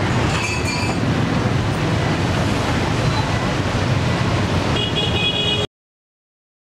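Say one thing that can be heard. Motorbikes and traffic rumble steadily along a street outdoors.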